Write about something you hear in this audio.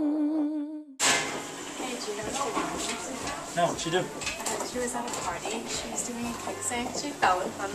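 Teenage boys and girls chatter nearby in an echoing hallway.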